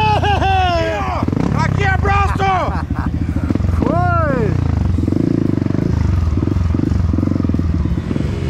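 A dirt bike engine putters and idles close by.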